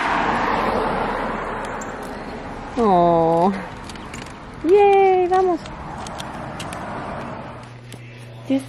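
Stroller wheels roll over pavement outdoors.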